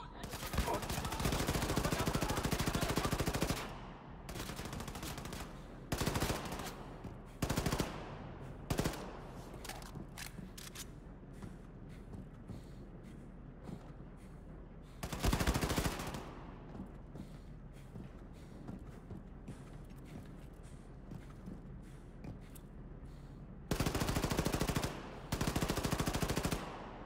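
A rapid-fire gun shoots in loud bursts.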